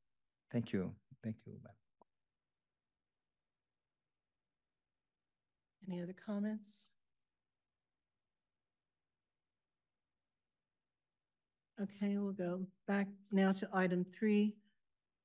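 A woman speaks calmly through a microphone, in short phrases with long pauses.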